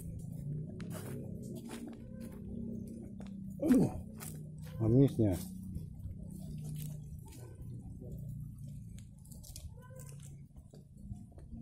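Footsteps in sandals crunch on a dirt path outdoors.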